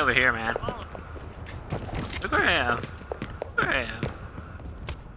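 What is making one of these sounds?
Footsteps tread quickly on a hard floor.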